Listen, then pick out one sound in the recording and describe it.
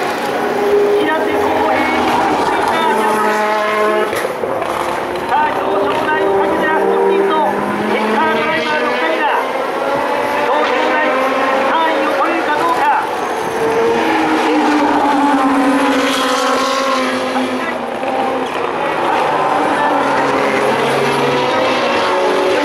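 Racing car engines roar loudly, revving up and down as cars speed past.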